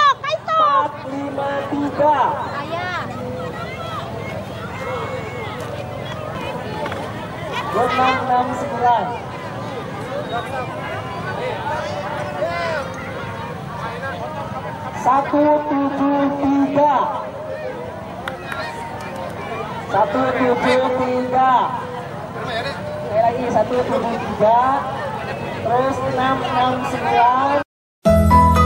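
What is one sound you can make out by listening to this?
A crowd of young people cheers and shouts loudly outdoors.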